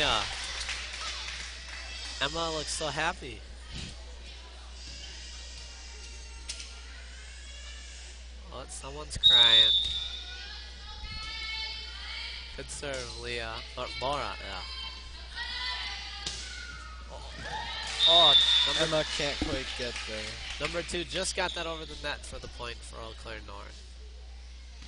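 Teenage girls shout and call out to each other on the court.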